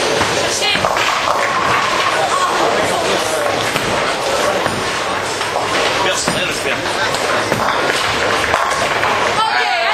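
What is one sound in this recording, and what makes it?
Bowling pins crash and clatter.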